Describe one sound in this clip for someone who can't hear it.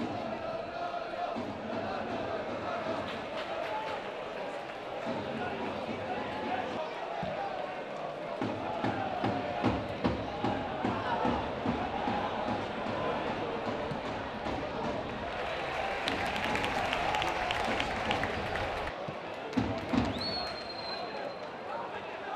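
A crowd murmurs and shouts in an open stadium.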